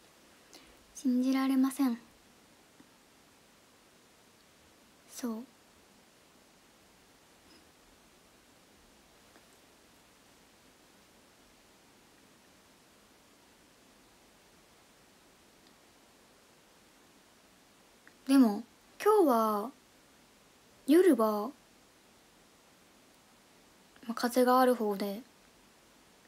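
A young woman speaks close to a microphone in short, casual bursts with long pauses between them.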